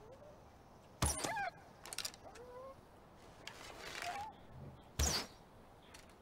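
A bowstring snaps as an arrow is shot.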